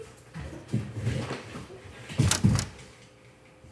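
A child thumps down onto a leather sofa.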